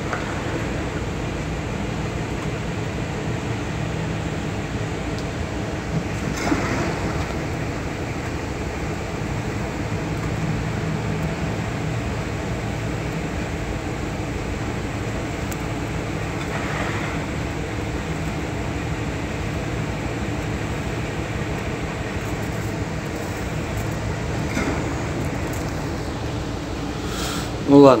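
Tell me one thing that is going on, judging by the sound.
Waves crash and splash against a porthole.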